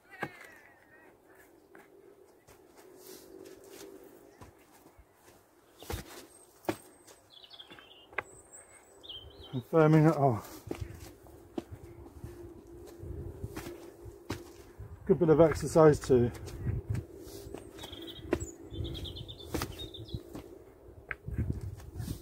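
Hands pat and press loose soil.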